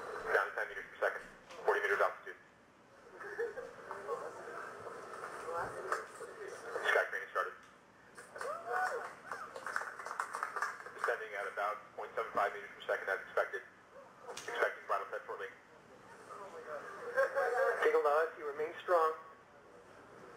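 A man speaks calmly over a radio loudspeaker.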